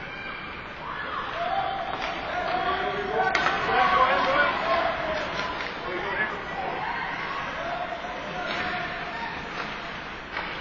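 Spectators and players shout in a large echoing rink.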